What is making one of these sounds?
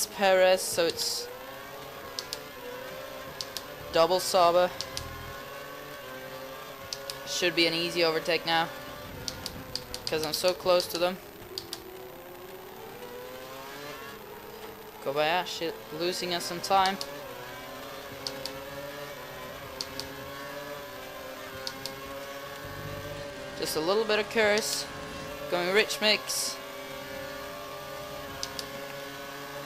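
A racing car engine screams at high revs, rising and dropping in pitch as the gears change.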